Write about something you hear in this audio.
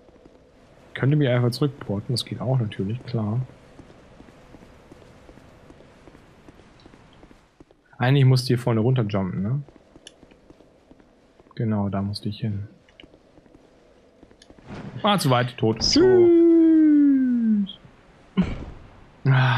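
A man talks with animation into a close microphone, in bursts.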